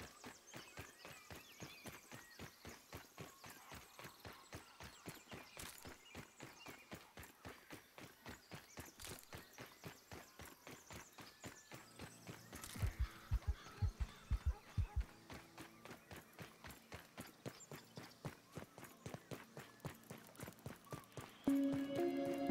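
Quick footsteps patter over sand.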